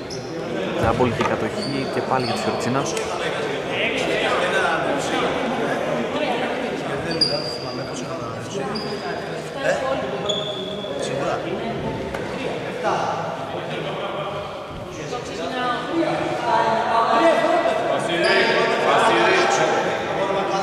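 Men talk and call out to each other across an echoing hall.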